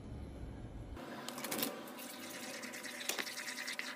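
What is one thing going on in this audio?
A wooden spoon stirs thick sauce in a pan.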